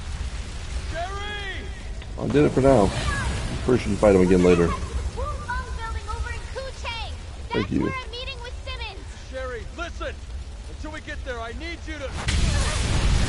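A man speaks with animation, heard through a microphone.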